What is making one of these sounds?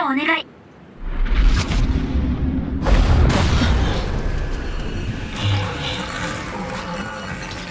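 A huge creature growls with a deep, loud rumble.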